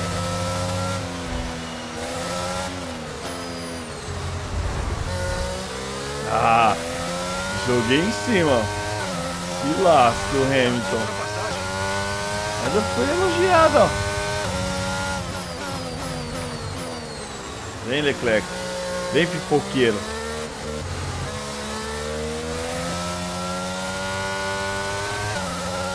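A racing car engine screams, rising in pitch through each gear and dropping at each shift.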